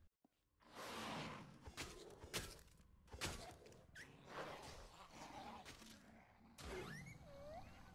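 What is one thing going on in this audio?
A metal pipe strikes a creature with heavy thuds.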